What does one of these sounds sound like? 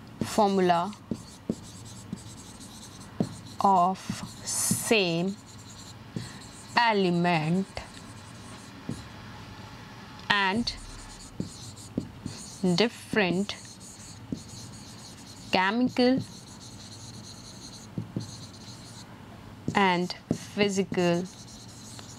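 A young woman speaks calmly and clearly into a close microphone, in short phrases with pauses.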